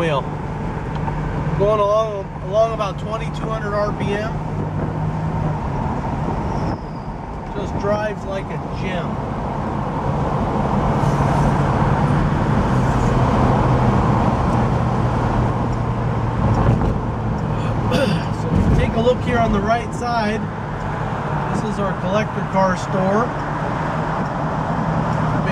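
A car engine rumbles steadily at idle and while driving.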